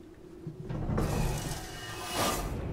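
A metal hatch slides open with a hiss.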